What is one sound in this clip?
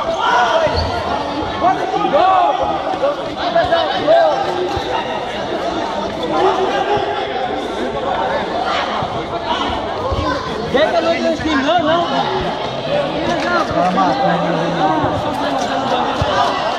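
A football thumps off players' feet now and then.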